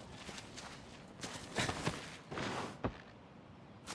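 Horse hooves thud on the ground.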